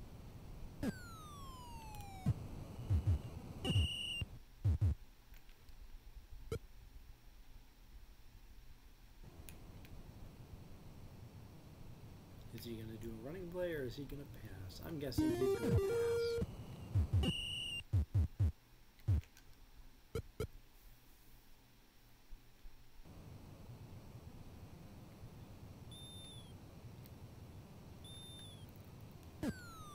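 A video game plays electronic beeps and falling tones.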